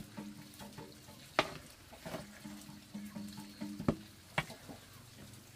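A wooden paddle knocks and scrapes inside a metal pot.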